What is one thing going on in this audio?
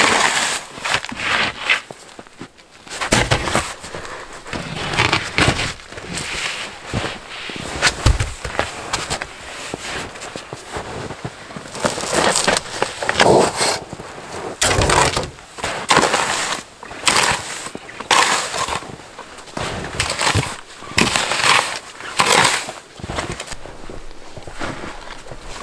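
Boots crunch and stomp in deep snow.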